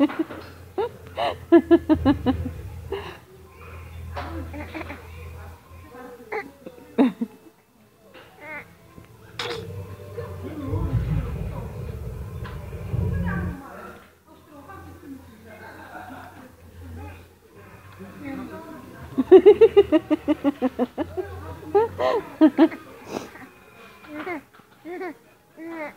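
A baby giggles and squeals close by.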